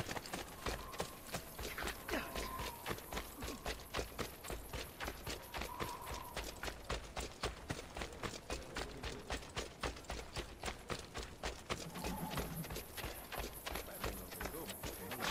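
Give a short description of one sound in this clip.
Quick footsteps run steadily over a gravel path.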